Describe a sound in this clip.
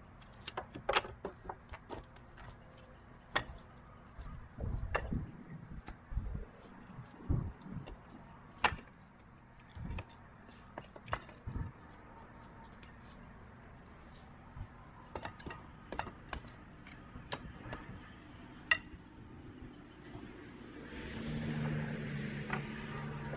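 Split firewood logs knock and clatter as they are stacked onto a woodpile.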